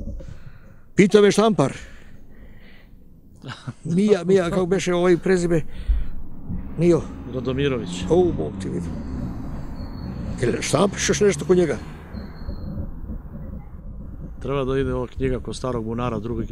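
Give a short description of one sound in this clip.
An elderly man talks calmly into a nearby microphone.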